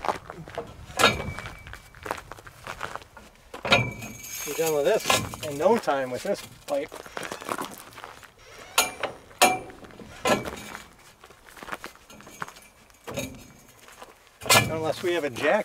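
A metal bar clanks against a steel fitting.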